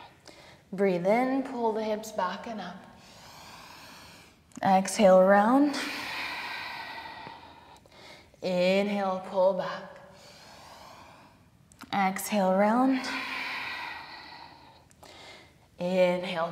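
A woman speaks calmly and clearly, with a light echo.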